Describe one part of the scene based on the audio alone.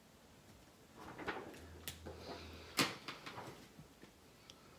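Paper rustles softly under a hand.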